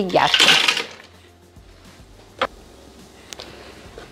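Ice cubes clatter into a steel mixing bowl.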